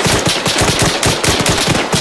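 A rifle fires a burst of loud shots.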